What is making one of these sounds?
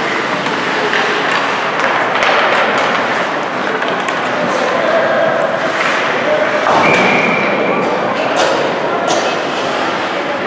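A crowd of spectators chatters steadily in a large echoing rink.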